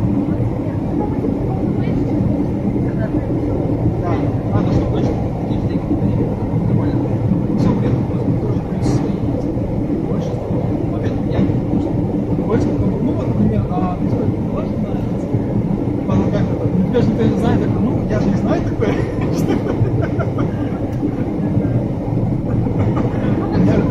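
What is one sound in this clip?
A car's engine and tyres rumble steadily on a highway.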